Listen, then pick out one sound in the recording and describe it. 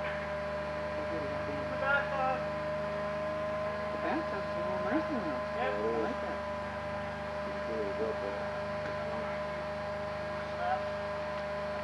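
A man speaks nearby in short, muffled bursts.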